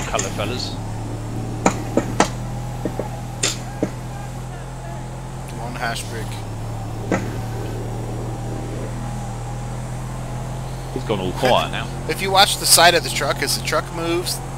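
A large truck engine hums steadily as the truck drives along a road.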